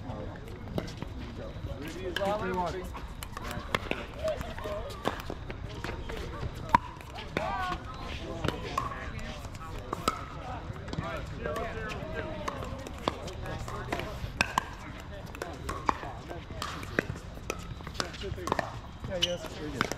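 Paddles hit a plastic ball with sharp hollow pops, outdoors.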